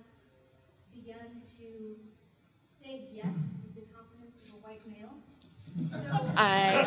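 A young woman speaks into a microphone.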